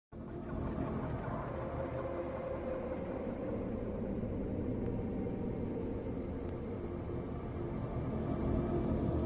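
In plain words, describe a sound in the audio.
A bus engine rumbles steadily from inside as the bus drives along.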